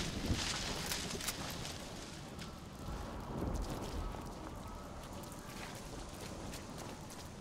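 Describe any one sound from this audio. Footsteps crunch softly over rough ground.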